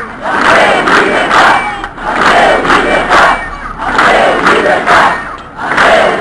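People clap their hands in rhythm.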